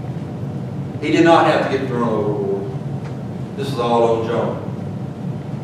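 A middle-aged man speaks calmly into a microphone in an echoing hall.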